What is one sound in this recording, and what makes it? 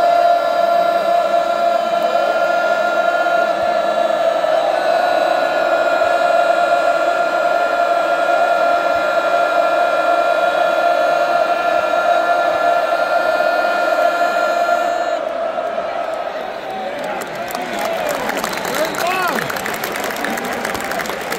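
A large stadium crowd roars loudly and steadily, then eases off.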